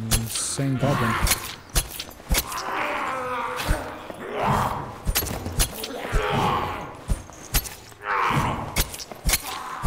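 Blows land with heavy thuds and clangs.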